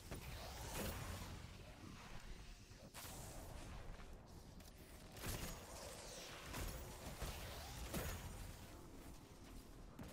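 Guns fire in bursts with sharp, loud blasts.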